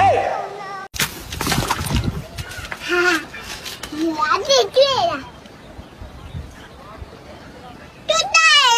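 A young child babbles up close.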